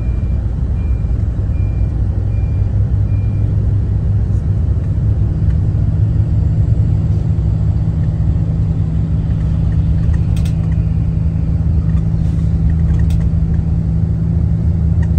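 An engine hums steadily inside a moving vehicle.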